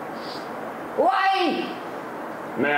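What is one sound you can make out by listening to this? A middle-aged woman shouts a short call nearby.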